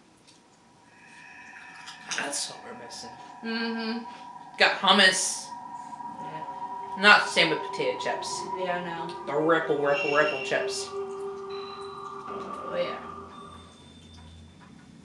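Eerie video game music plays with soft chimes.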